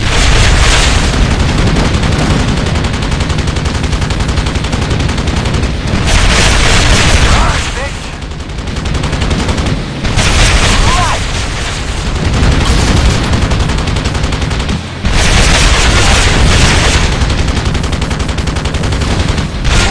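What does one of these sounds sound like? Helicopter rotors thump steadily.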